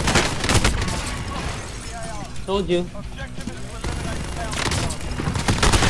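A rapid-firing machine gun fires long bursts of shots.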